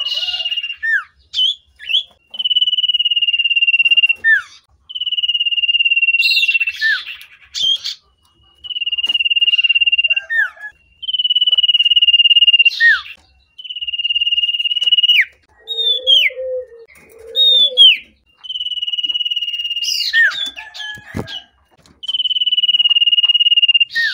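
A small bird sings loud, long trilling phrases close by, with short chirps in between.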